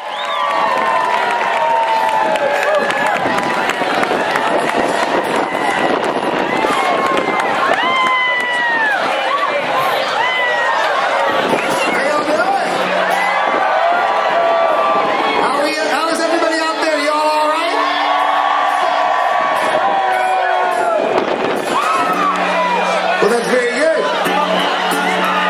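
A band plays loud rock music on stage.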